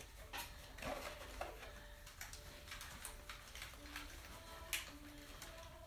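Paper and plastic wrapping rustle and crinkle close by.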